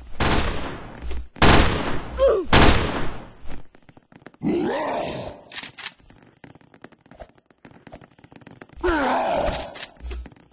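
A knife swishes through the air in quick slashes.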